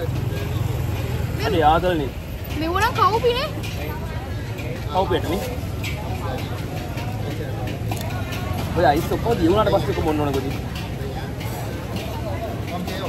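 A crowd murmurs outdoors in the background.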